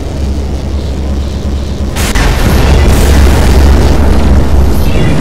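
A low mechanical rumble drones steadily.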